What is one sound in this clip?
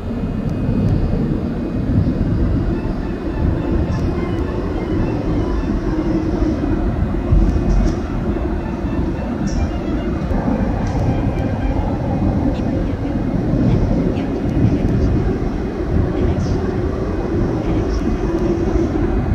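A subway train rumbles loudly through a tunnel.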